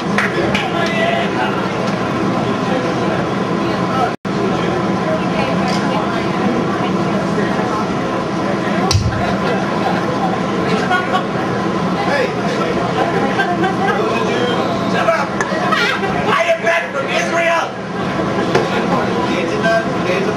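Electric guitars grind loudly with heavy distortion.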